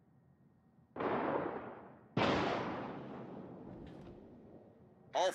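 Heavy naval guns fire in loud booming blasts.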